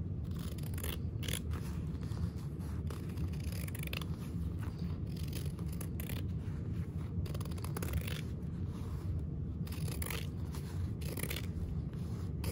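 Scissors snip and crunch through fabric close by, in short repeated cuts.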